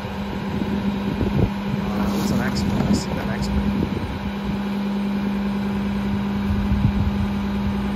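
A garbage truck engine idles with a steady drone.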